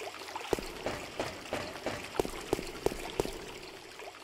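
Footsteps tap steadily on a hard stone floor, echoing.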